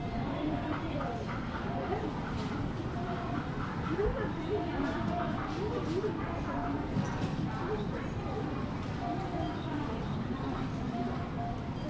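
A metal pick taps and scrapes on a griddle as small cakes are flipped.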